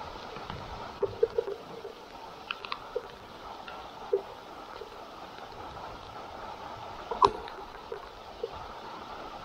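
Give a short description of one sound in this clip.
Water drips with soft irregular taps.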